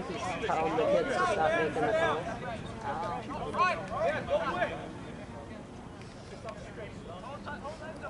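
Several people shout and cheer excitedly from nearby, outdoors.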